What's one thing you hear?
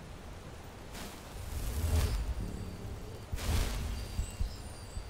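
A spell bursts with a loud whoosh.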